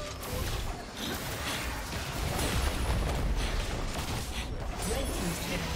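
Game hits thud and clash repeatedly.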